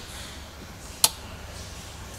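A button clicks once.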